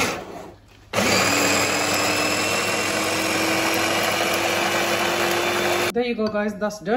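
An electric chopper whirs steadily.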